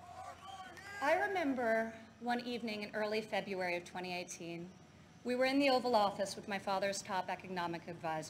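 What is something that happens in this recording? A young woman speaks calmly into a microphone over loudspeakers.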